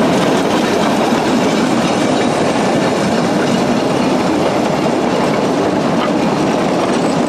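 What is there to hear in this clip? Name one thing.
Train wheels rumble and clank along the rails.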